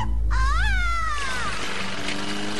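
A woman shrieks in pain.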